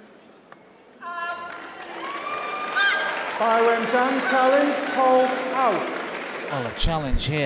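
A crowd in a large hall cheers and chants.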